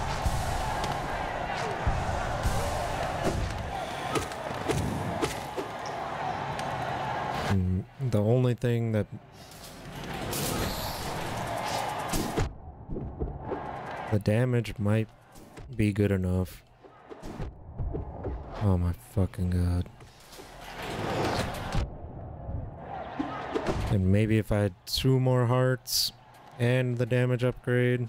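Game music and fight sound effects play.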